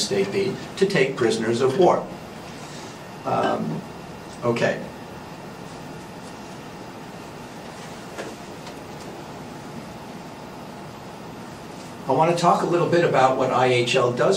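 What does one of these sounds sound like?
A man lectures through a microphone, speaking with pauses.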